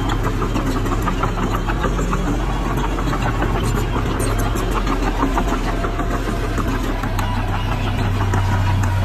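A small bulldozer's diesel engine rumbles steadily close by.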